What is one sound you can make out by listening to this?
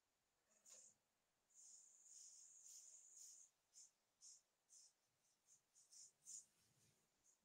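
Chalk scrapes and taps on a blackboard.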